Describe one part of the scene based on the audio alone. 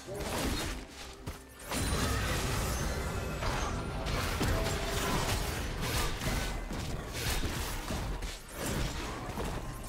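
Sword slashes and spell effects clash in a game fight.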